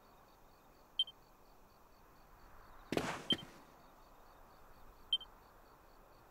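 A short electronic blip sounds as a game menu opens and moves.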